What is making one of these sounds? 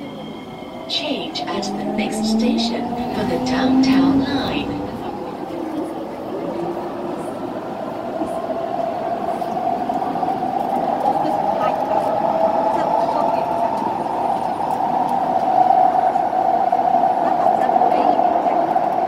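A train's motor whines and rises in pitch as it speeds up.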